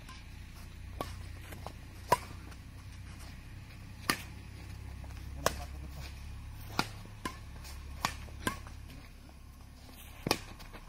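Rackets strike a shuttlecock with sharp pops, back and forth.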